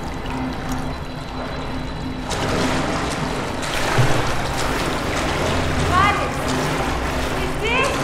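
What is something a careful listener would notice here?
Water splashes and sloshes as a person wades through it.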